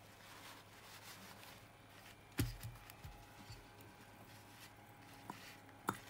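Paper tissue rustles and crinkles.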